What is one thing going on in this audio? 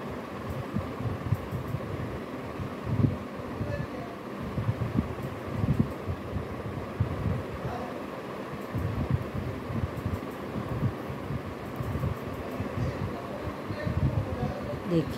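Knitting needles click and tap softly together.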